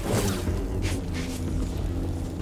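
A lightsaber blade sizzles against a stone wall.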